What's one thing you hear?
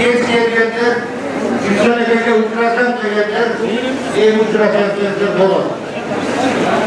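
A man speaks loudly through a microphone and loudspeaker in an echoing hall.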